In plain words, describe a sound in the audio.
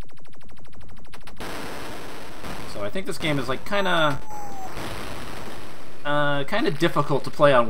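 Retro arcade game sound effects beep and crash.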